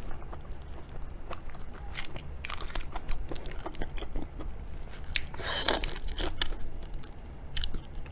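Shrimp shells crackle as they are peeled by hand.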